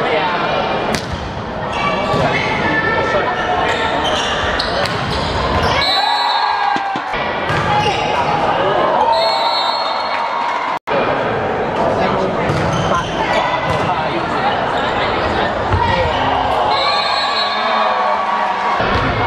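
A volleyball thumps off players' hands.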